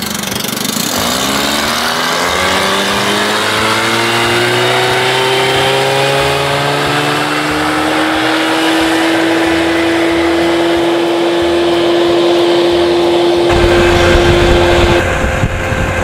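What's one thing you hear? An outboard motor revs up and speeds away, its hum rising in pitch.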